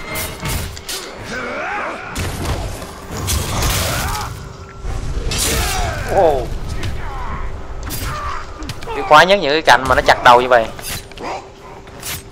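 Metal blades clash and strike in quick blows.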